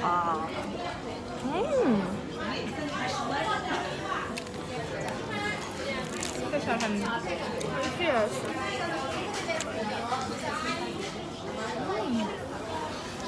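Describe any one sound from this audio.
A young woman talks playfully close to the microphone.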